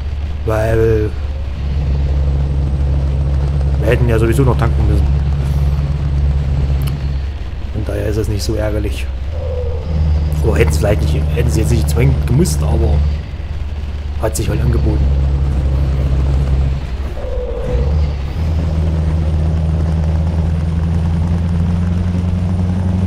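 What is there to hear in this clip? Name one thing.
A truck engine drones steadily and low.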